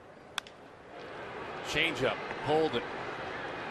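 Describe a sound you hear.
A crowd cheers in a large stadium.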